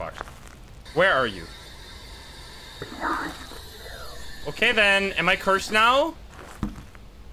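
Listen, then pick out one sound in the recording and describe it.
A handheld radio scanner hisses and crackles with static.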